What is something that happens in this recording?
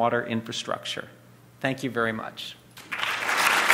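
A middle-aged man speaks calmly into a microphone in a large hall.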